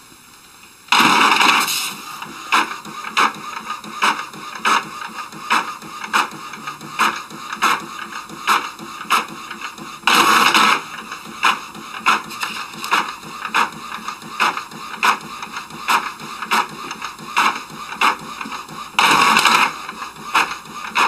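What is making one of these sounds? A printer feeds paper out with a rushing whir.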